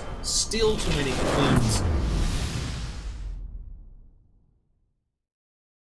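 A deep whoosh sweeps downward and fades.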